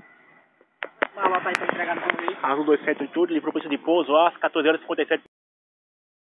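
A middle-aged man speaks with animation close to a phone's microphone.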